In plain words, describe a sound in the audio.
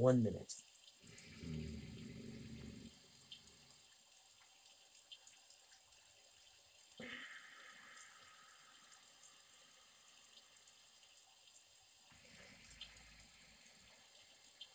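A man breathes slowly and deeply.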